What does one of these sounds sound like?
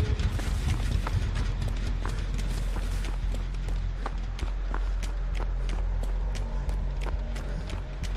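Footsteps run quickly over dry leaves and grass.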